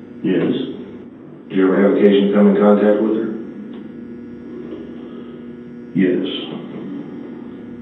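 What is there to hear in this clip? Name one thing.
A man answers briefly in a low voice nearby.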